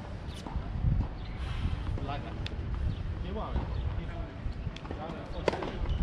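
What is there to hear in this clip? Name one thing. Tennis shoes scuff and tap on a hard court.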